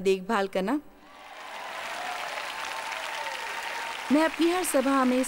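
A large audience claps in a big hall.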